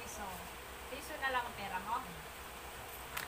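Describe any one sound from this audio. A young girl speaks up close.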